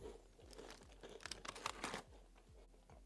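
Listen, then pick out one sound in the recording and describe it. A plastic tray crinkles as cookies are pulled out.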